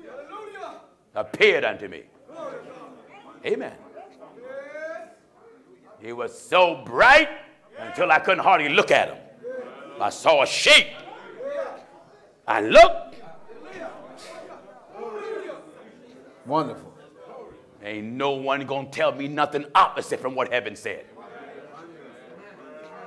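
A man preaches with passion through a microphone in an echoing hall, his voice rising to shouts.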